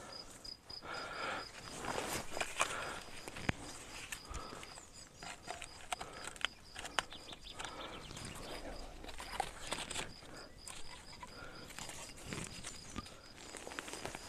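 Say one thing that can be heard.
Leafy branches rustle and snap as a man pulls at them.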